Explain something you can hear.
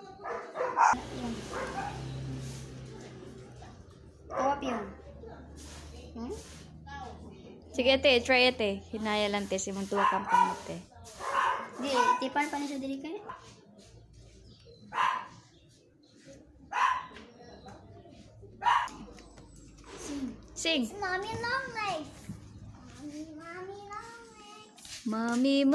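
A young girl talks nearby with animation.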